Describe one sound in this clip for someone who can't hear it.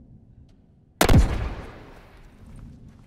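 A rifle fires a single loud shot that rings out.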